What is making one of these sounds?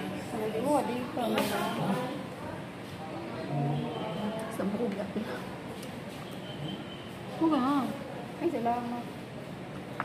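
A young boy talks close by in a high voice.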